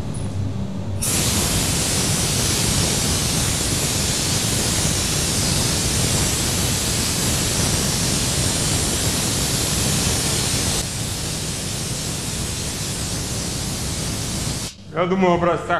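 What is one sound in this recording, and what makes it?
A spray gun hisses steadily as it sprays.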